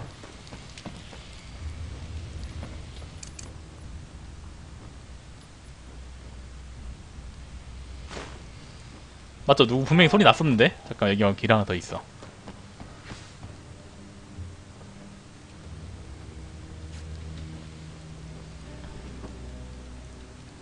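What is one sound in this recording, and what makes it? Footsteps thud softly on wooden floorboards.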